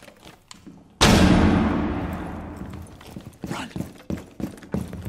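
A loud explosion booms nearby and rumbles away.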